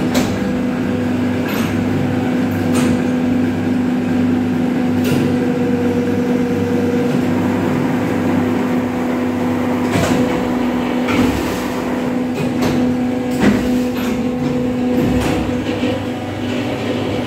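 A machine hums steadily with a low drone.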